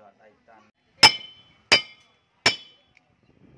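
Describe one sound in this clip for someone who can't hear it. A hammer strikes a rock with sharp metallic clinks.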